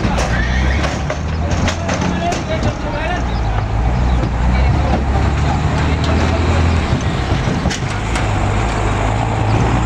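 Several men shout and call to each other nearby.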